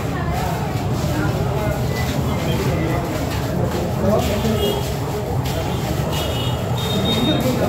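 A crowd of men talks and chatters close by.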